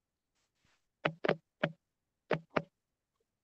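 A woman speaks in short bursts over an online call.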